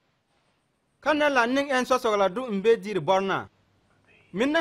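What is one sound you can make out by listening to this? A man speaks slowly and solemnly nearby.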